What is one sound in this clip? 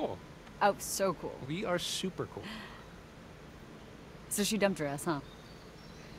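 A young woman speaks teasingly, close by.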